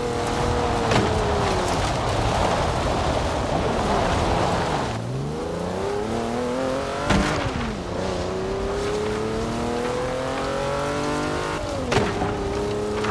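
Tyres rumble over rough ground.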